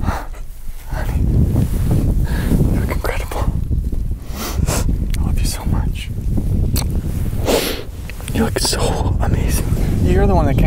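A young man speaks softly and emotionally up close.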